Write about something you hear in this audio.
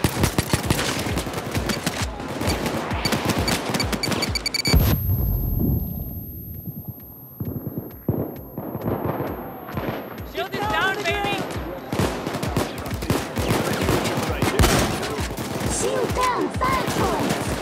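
Rapid gunfire rattles and echoes in a large concrete space.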